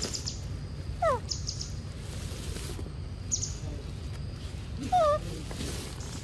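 A young monkey gives short high squeaks.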